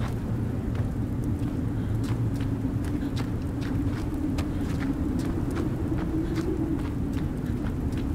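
Light footsteps patter quickly on wood.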